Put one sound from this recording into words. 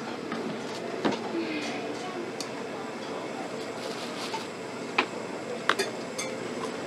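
Metal tongs clink against a metal strainer.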